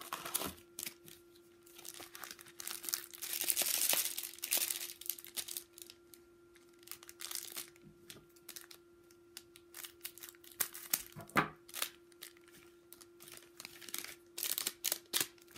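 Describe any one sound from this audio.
Foil wrappers crinkle and rustle in a person's hands.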